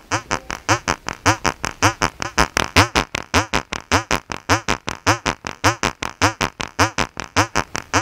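A synthesizer plays a fast, repeating pattern of plucky, chirping electronic notes.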